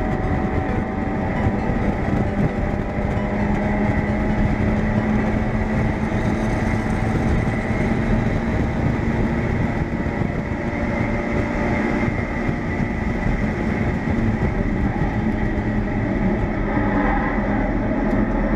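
A race car engine roars loudly up close, its pitch rising and falling through gear changes.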